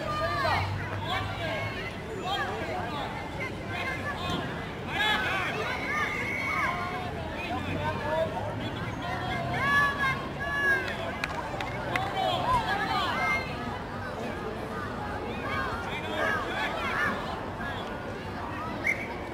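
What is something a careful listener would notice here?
Young players call out to one another across the field.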